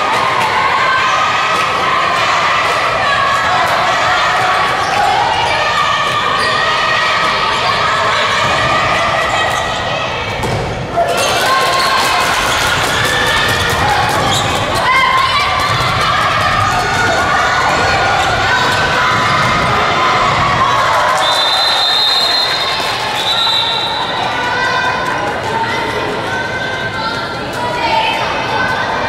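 A crowd of young spectators cheers and shouts in a large echoing hall.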